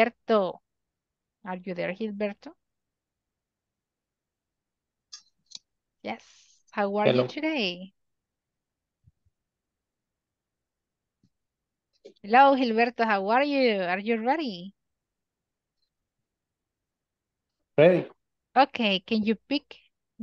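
A man speaks with animation through an online call, in short bursts with pauses.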